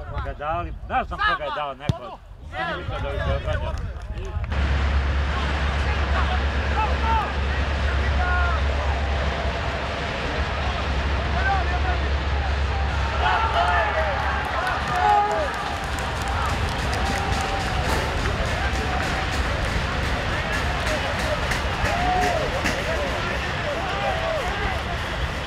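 Men shout to each other in the distance across an open field.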